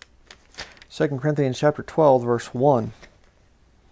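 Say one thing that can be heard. A man speaks briefly and clearly, close to a microphone.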